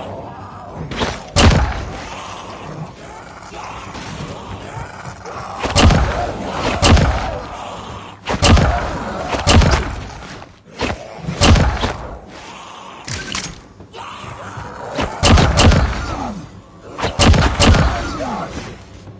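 Knife blades slash and strike with sharp thuds.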